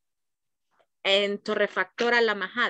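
A woman speaks clearly over an online call.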